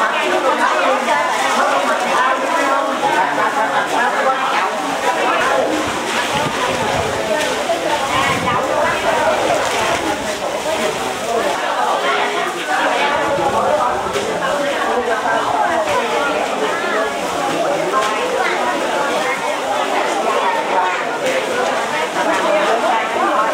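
A crowd of women and men chatter loudly nearby in an echoing room.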